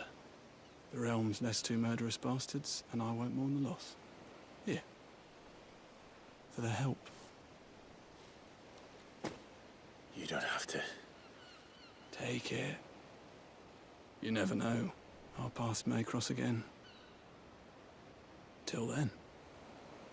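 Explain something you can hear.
A young man speaks calmly and quietly.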